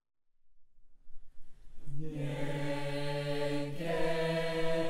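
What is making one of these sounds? A choir sings in harmony.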